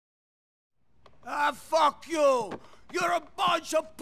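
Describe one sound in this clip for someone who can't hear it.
A man speaks angrily and loudly nearby.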